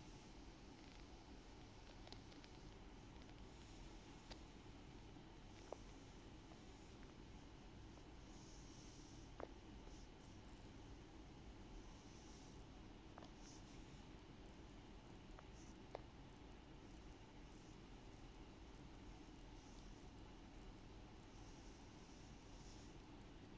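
A cat purrs softly.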